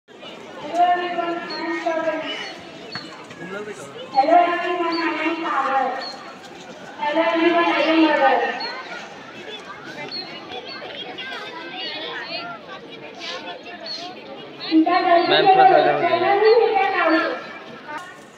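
A girl sings through a microphone outdoors.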